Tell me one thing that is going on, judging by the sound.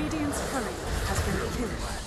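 Lightning zaps and crackles sharply.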